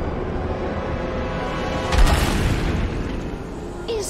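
A monster snarls and roars.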